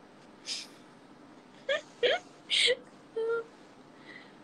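A young woman giggles softly close by.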